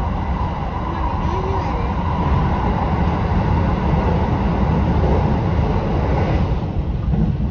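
A train's roar echoes loudly inside a tunnel, then drops as the train comes out.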